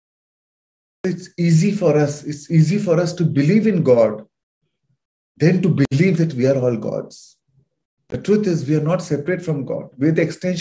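A man speaks calmly through a microphone over an online call.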